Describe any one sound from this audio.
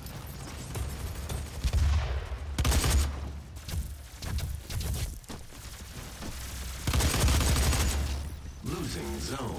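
Rapid gunfire and explosions burst loudly in bursts.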